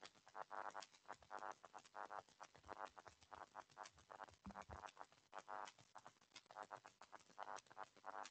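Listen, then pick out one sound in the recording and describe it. A woman speaks steadily through an online call.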